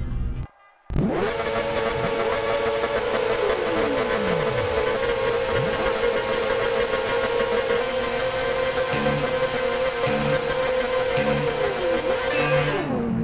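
Motorcycle engines idle with a steady drone.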